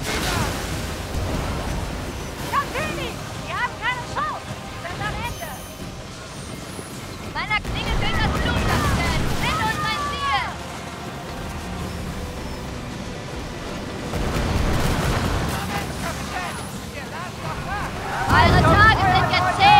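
Cannons boom and explosions rumble.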